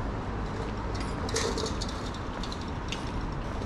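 A bicycle rolls past with its freewheel ticking.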